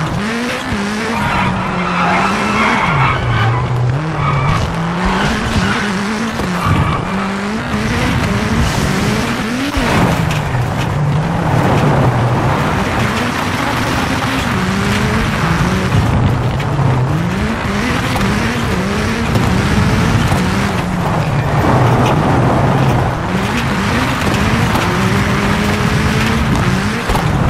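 A rally car engine roars, revving up and down through the gears.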